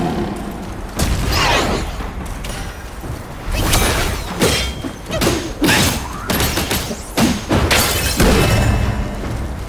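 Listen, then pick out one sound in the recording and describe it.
Blows strike and clash sharply in a fight.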